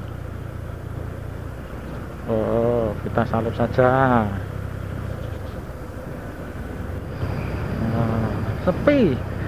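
A vehicle engine rumbles steadily while driving along a road.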